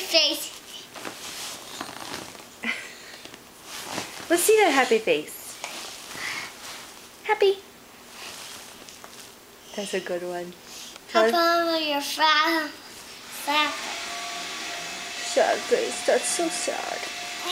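A young boy talks and squeals playfully close by.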